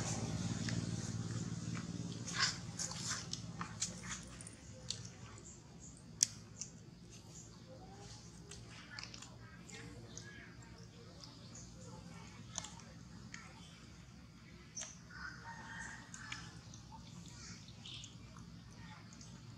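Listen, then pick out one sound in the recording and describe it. A monkey chews and smacks on soft fruit up close.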